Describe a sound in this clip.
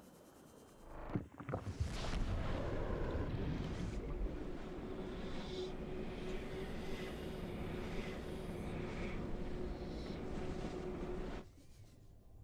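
A loud whooshing rush roars steadily and then cuts off.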